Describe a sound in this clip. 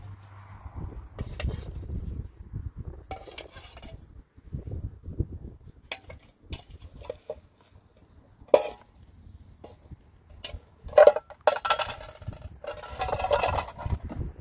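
A small wood fire crackles.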